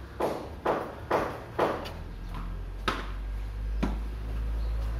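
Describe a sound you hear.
A ball thuds sharply against a wall several times.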